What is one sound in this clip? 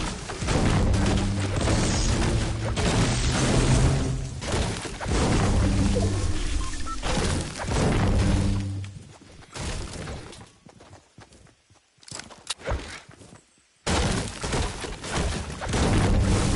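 A pickaxe chops into wood with hard knocks.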